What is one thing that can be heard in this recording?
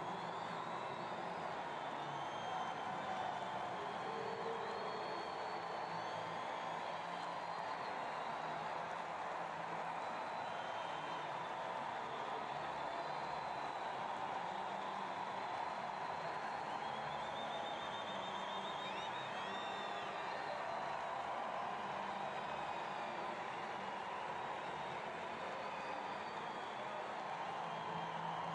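A large stadium crowd murmurs and cheers throughout.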